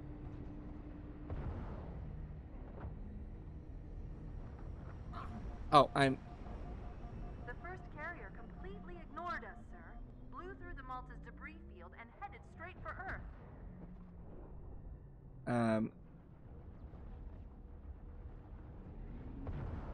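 A futuristic energy weapon fires with crackling electric zaps.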